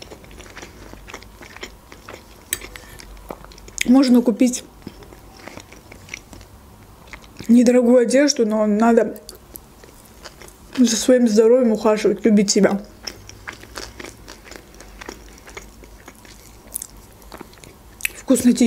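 A young woman chews food with soft, wet mouth sounds.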